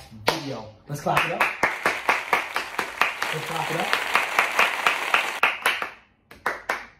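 Several people clap their hands in quick rhythm.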